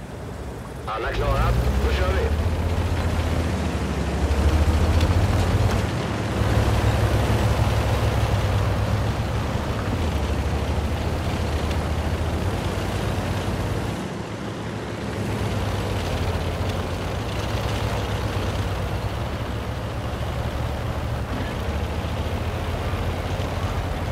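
A heavy tank engine rumbles and roars as the tank drives over rough ground.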